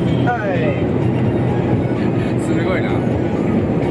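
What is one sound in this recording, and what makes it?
A young man laughs softly nearby.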